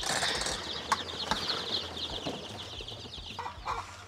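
A metal-mesh lid rattles as it is lifted and propped open.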